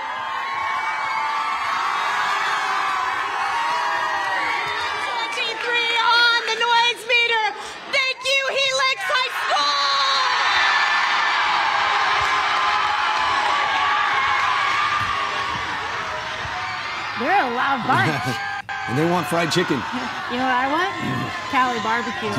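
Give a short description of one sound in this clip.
A large crowd cheers and screams loudly in an echoing hall.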